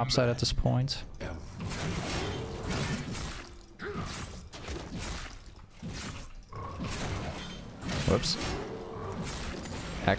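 Game spell effects whoosh and clash.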